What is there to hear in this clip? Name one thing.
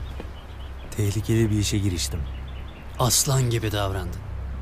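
A man speaks calmly and warmly nearby.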